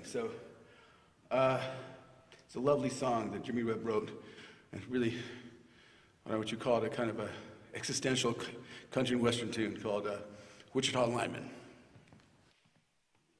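A middle-aged man speaks with animation into a microphone in a large echoing hall.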